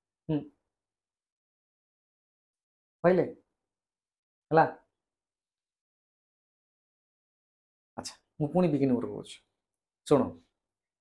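A man speaks calmly into a close microphone, in short bursts with long pauses.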